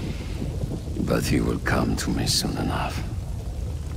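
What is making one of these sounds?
A man speaks in a low, gravelly voice close by.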